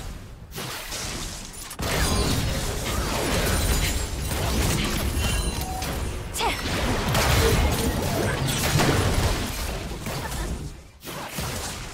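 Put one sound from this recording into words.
Magic blasts and clashing hits crackle and boom in a fast battle.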